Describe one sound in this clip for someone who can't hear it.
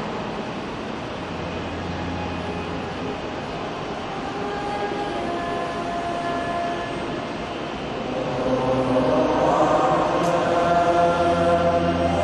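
A large choir sings.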